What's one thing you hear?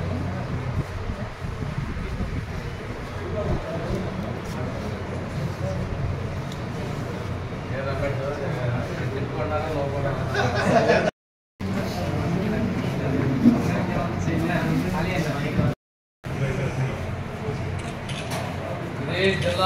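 Several men murmur and talk quietly nearby.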